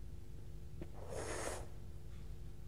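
A man blows out a sharp puff of air.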